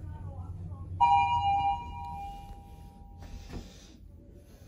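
An elevator chime rings with a sustained tone.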